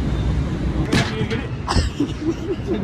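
Cardboard boxes thump inside a truck trailer.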